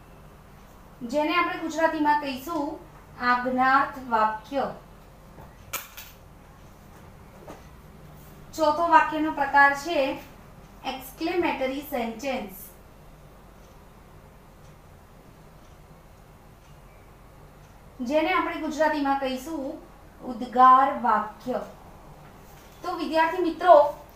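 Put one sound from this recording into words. A woman speaks calmly and clearly, in short phrases with pauses.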